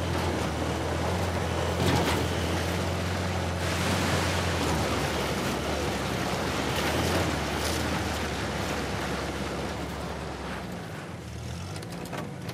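Tyres crunch and splash over rocks, dirt and mud.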